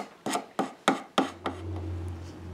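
A chisel taps and scrapes on wood.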